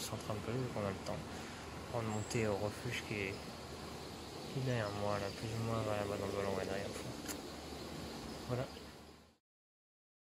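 A young man talks calmly and close up.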